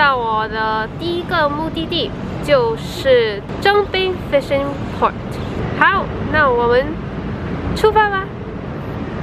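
A young woman talks up close to the microphone, with animation.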